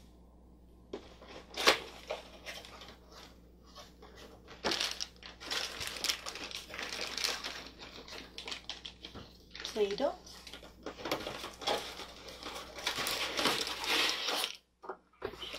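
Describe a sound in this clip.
A cardboard box scrapes and rustles as it is handled.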